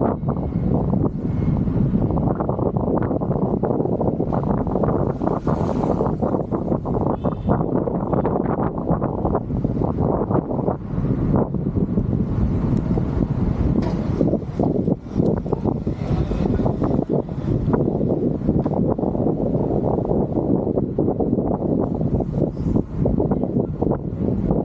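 Wind rumbles loudly against the microphone of a moving bicycle.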